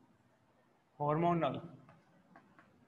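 A young man speaks up close, explaining.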